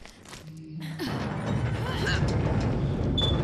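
A metal roller shutter rattles and scrapes as it is forced upward.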